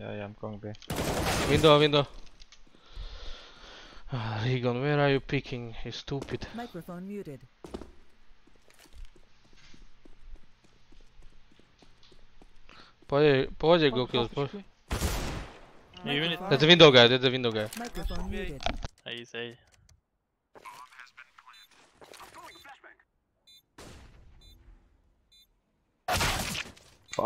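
Gunshots crack loudly from a game.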